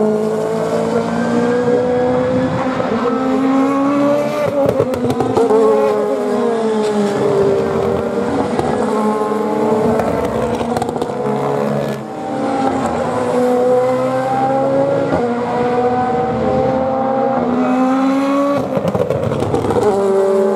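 High-revving GT race car engines roar as the cars accelerate away up a hill, shifting through the gears.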